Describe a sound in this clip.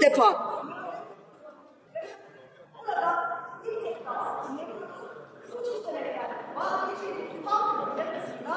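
A woman speaks steadily into a microphone, heard over loudspeakers in a large echoing hall.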